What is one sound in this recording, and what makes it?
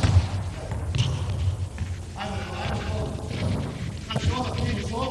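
A ball bounces on a hard floor in a large echoing hall.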